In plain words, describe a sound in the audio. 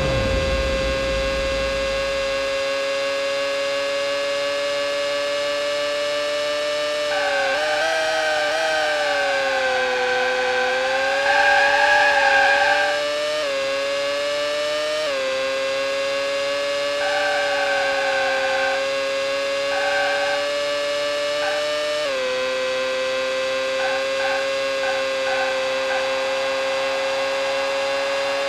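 A racing car engine whines steadily at high revs, dipping and rising as the car brakes and speeds up.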